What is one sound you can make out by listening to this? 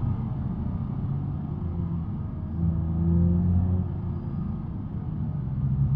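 A car engine hums low and steady, rising and falling in pitch as the car drives.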